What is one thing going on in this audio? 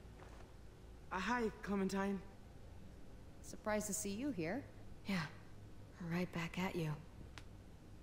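A man answers calmly.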